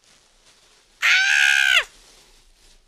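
A young woman shrieks loudly in excitement.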